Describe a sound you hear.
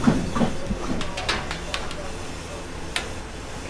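Metal trays clink and rattle against a metal rack.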